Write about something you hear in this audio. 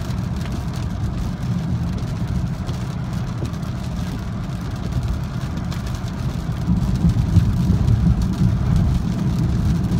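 A car engine hums steadily from inside the cabin and grows louder as the car speeds up.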